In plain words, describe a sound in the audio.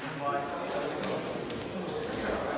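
A shuttlecock is struck by rackets with sharp pops.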